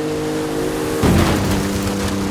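A car lands hard with a heavy thud.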